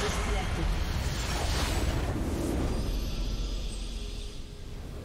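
A game's magic blasts burst loudly.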